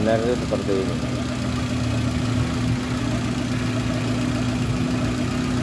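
A car engine idles steadily with a low hum close by.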